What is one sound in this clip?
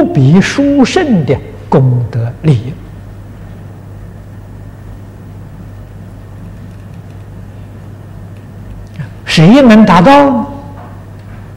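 An elderly man speaks calmly and clearly into a microphone, with pauses.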